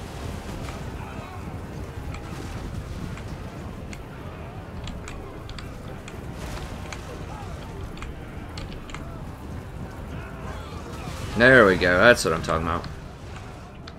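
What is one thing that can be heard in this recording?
Horses' hooves thunder and weapons clash in a battle.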